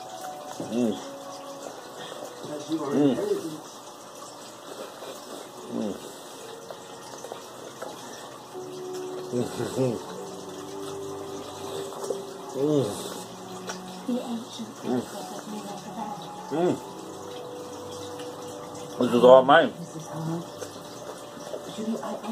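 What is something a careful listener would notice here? An elderly man talks calmly and close by.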